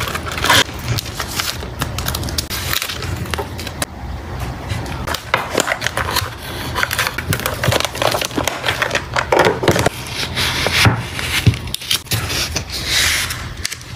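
A plastic card sleeve crinkles as it is handled.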